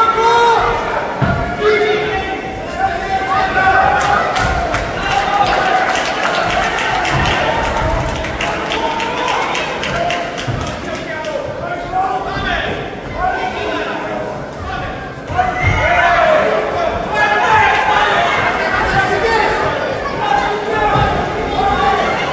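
Boxing gloves thud against a fighter's body.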